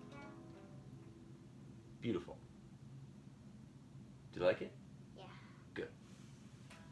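An acoustic guitar is strummed and its notes ring out.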